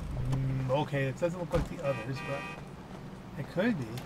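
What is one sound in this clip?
A car door opens and thuds shut.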